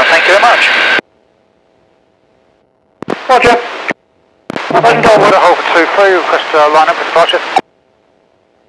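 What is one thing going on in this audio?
A man speaks over a headset microphone.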